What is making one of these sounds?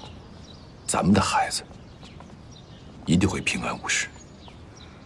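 A man speaks softly and calmly nearby.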